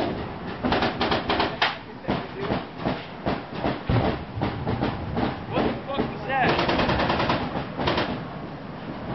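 Footsteps crunch on loose rubble close by.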